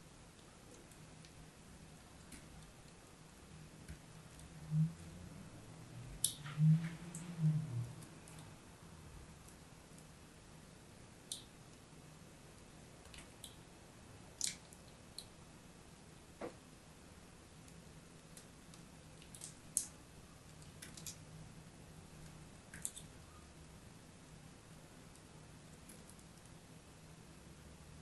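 A blade scrapes and cuts into crumbly chalk with sharp crunching snaps.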